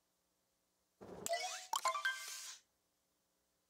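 A menu chimes with short bright tones.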